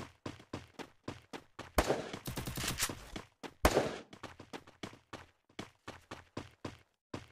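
Footsteps thud quickly and evenly as a game character runs.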